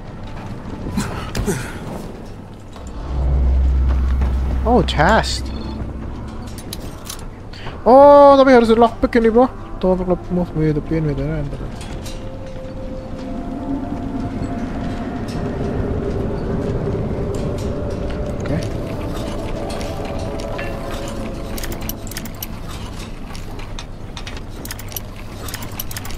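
A young man talks casually into a nearby microphone.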